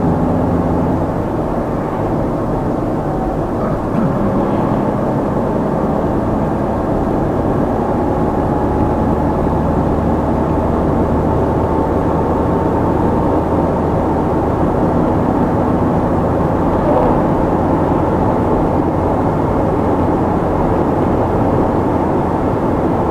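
Tyres roll and hiss on asphalt.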